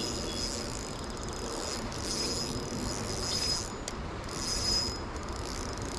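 A fishing reel clicks and whirs as its handle is cranked in bursts.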